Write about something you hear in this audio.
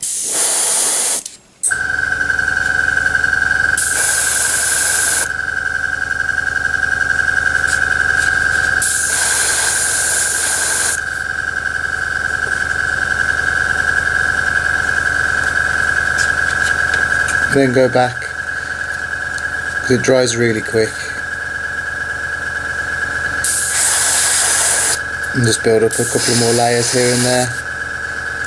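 An airbrush sprays paint in short hissing bursts.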